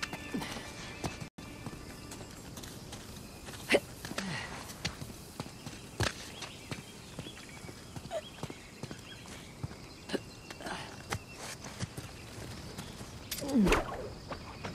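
Footsteps fall on stone and rock.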